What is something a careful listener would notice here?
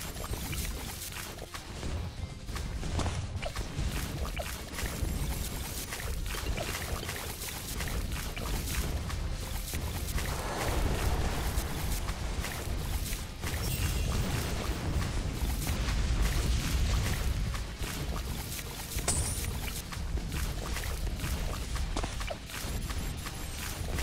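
Game sound effects of rapid popping and blasts play continuously.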